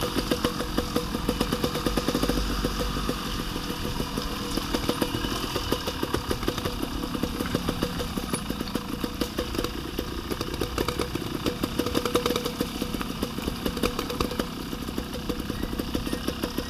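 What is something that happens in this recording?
Tyres bump and rattle over a rough dirt track.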